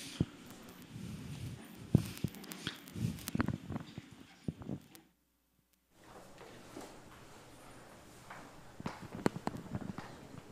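Plastic chairs scrape and knock on a hard floor.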